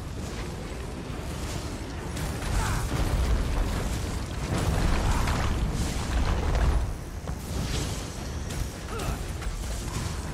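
Lightning zaps with sharp electric crackles.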